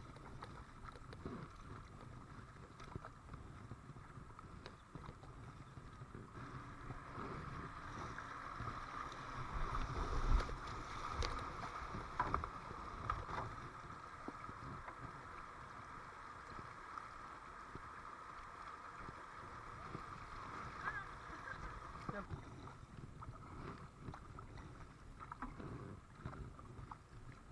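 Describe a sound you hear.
A kayak paddle splashes and dips in water close by.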